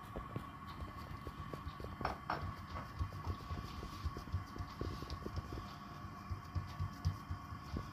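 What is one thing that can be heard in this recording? Hands pat and press soft dough.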